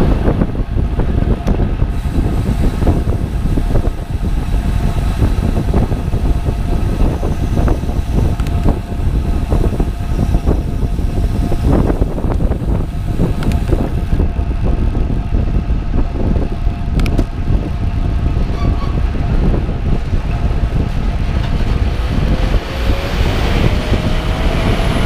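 Wind rumbles loudly and steadily across the recording.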